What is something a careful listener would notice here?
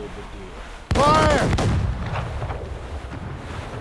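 Cannons fire a loud booming volley.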